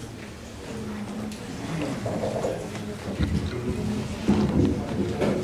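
A man talks in a low voice nearby, heard over a microphone in an echoing room.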